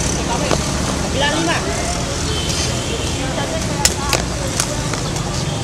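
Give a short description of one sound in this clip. A ball is struck by hand and thuds.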